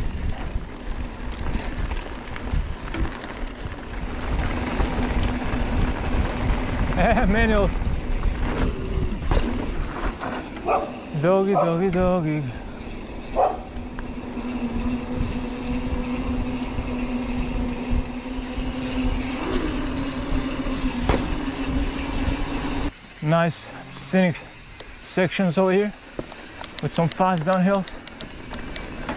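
Bicycle tyres roll over dirt and pavement.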